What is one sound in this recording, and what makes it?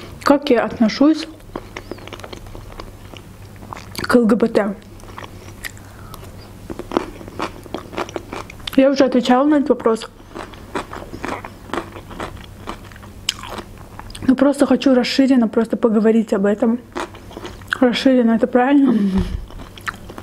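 A young woman speaks softly and calmly close to a microphone.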